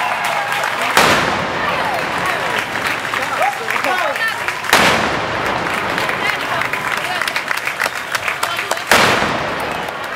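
Firework blasts boom sharply a few times.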